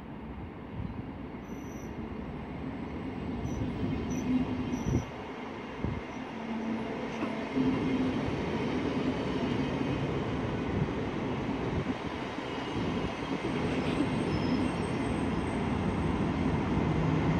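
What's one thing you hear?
A train rumbles past close by, its wheels clattering over the rail joints.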